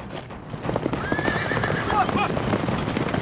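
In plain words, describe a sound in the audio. A horse neighs loudly.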